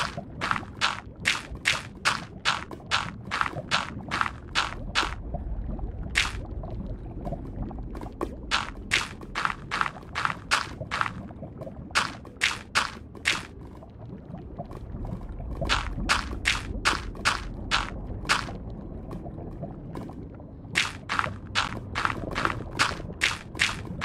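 Lava bubbles and pops with a low, steady rumble.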